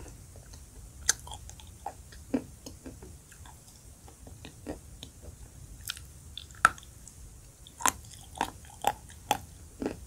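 A woman bites into a brittle block with sharp crunches close to a microphone.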